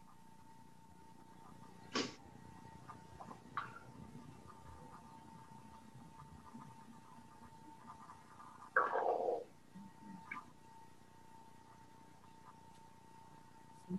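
A man speaks quietly over an online call.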